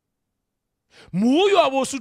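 A man sings out loudly through a microphone.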